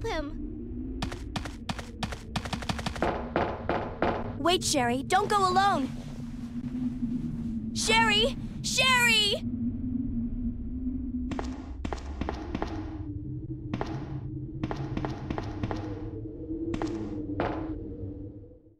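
Quick footsteps run on a hard floor.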